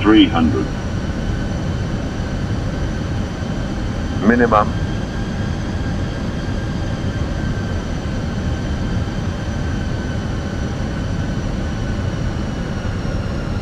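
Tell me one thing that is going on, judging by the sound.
Rushing air roars steadily.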